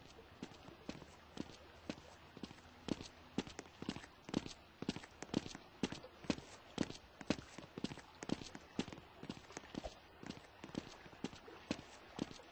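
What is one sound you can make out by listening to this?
Footsteps thud quickly and evenly on a wooden floor.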